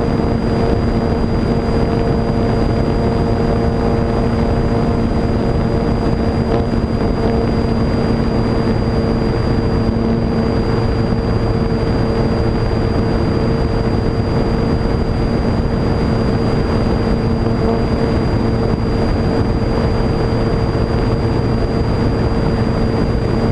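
A small propeller motor drones steadily at high speed.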